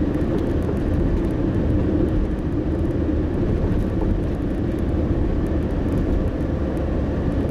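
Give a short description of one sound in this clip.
Tyres roll on asphalt with a steady low rumble.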